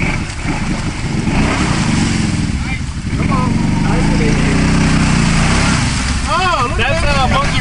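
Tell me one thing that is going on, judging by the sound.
Tyres churn and splash through mud.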